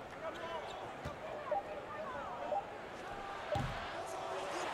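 A basketball thuds on the floor.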